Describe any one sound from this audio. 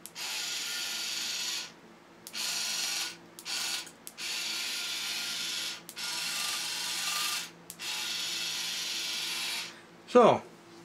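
A small electric motor whirs in short bursts.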